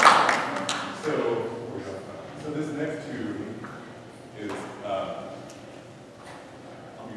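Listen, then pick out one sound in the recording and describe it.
A man speaks into a microphone over loudspeakers in an echoing hall.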